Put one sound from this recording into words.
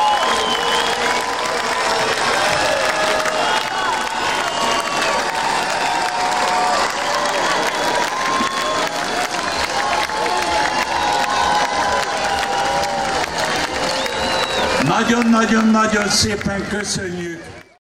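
A large crowd of adults sings along and cheers outdoors.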